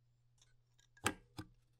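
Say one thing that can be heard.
A metal cover clacks against an engine case.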